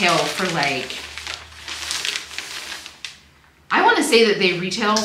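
Paper rustles and crinkles under hands.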